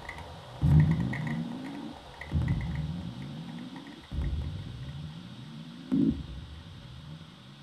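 Small parts of a device click and tick under someone's fingers.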